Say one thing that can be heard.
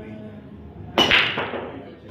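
A cue ball smashes into a rack of pool balls with a loud crack.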